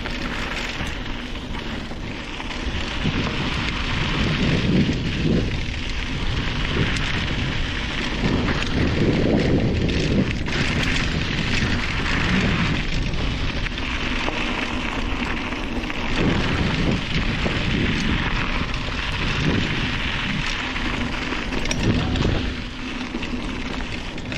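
Wind rumbles past the rider outdoors.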